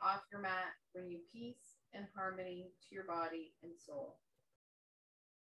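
A middle-aged woman speaks calmly to the listener, close by.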